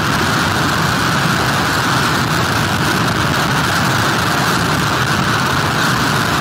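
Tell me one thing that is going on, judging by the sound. Heavy surf crashes and churns against a pier.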